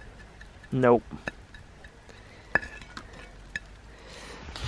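A wooden spoon taps and scrapes on a plate.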